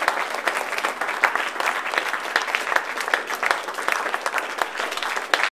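A group of young singers sings together.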